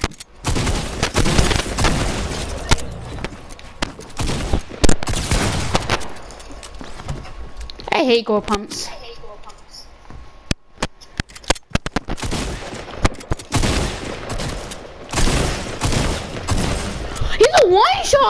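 Video-game gunshots fire in rapid bursts.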